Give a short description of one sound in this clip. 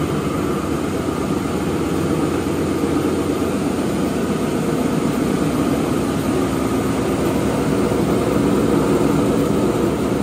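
Industrial machinery hums and whirs steadily with rolling drums.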